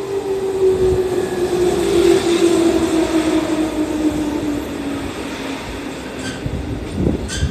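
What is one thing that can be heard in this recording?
An electric train pulls away, its motor whining and falling in pitch.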